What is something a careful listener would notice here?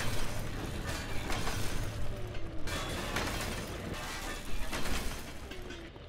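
A power tool grinds and cuts through metal.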